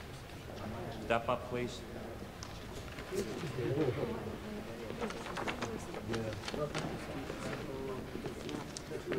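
A man speaks firmly in a large room.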